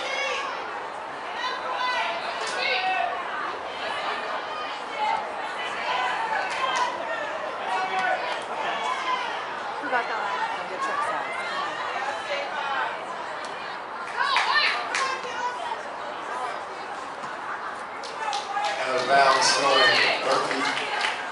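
Young women shout and call to each other across an open field outdoors.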